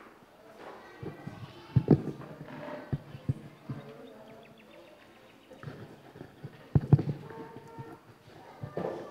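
A microphone bumps and thuds as it is handled near a stand.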